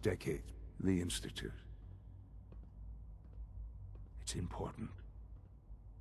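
An elderly man speaks calmly and earnestly, close by.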